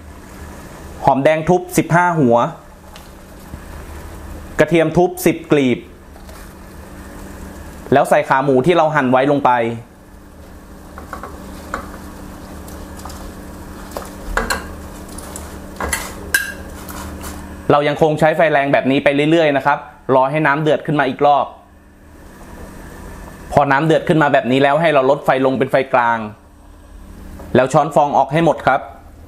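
Water boils and bubbles in a pot.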